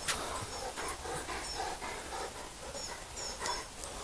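A large dog pants.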